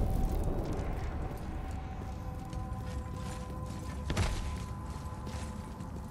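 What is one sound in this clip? Heavy footsteps crunch over frozen ground.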